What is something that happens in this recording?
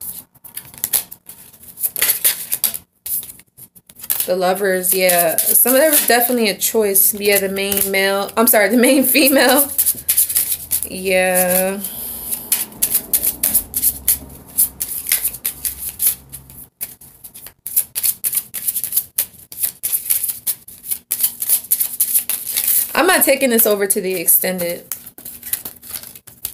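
Cards riffle and flap as a deck is shuffled.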